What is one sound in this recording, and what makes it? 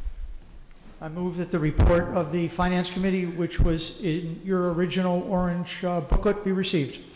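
An older man speaks calmly into a microphone in a large echoing hall.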